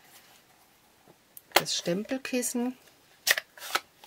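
A plastic case clicks open.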